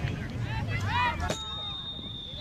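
A soccer ball is kicked with a thud.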